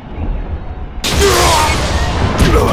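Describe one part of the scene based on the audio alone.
A lightning bolt crackles and booms.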